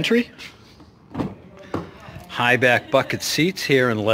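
A car door handle clicks and the door opens.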